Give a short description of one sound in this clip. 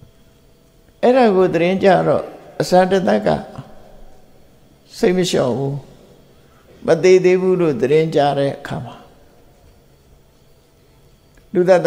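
An elderly man speaks calmly into a microphone, pausing between phrases.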